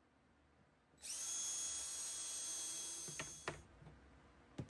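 A cordless drill whirs as it drives a screw into wood.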